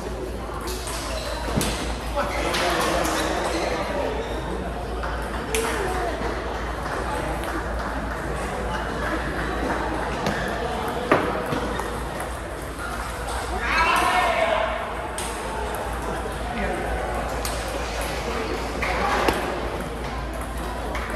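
Ping pong balls click sharply off paddles and tables.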